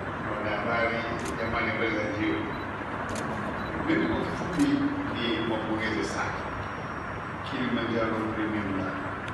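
A man speaks with animation into a microphone, heard through a loudspeaker in an echoing room.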